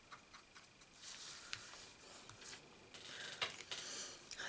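A sheet of paper slides and rustles across a table.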